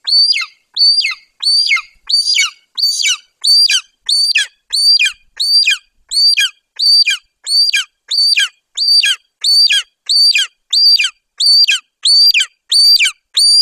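A young eagle calls close by with high, shrill cries repeated over and over at a fast, steady pace.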